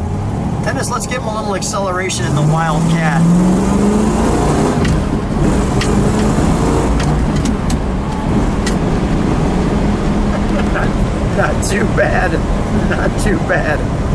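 Wind rushes past an open car.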